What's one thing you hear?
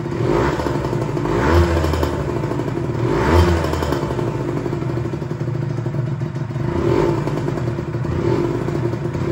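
A two-stroke sport bike idles roughly.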